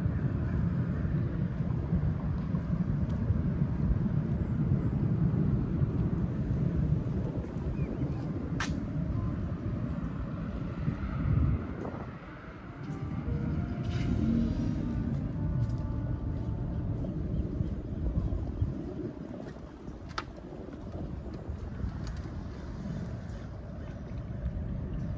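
Wind rumbles and gusts against the microphone outdoors.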